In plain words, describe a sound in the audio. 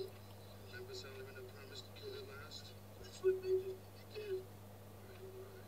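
A man speaks in a low, calm voice through a small loudspeaker.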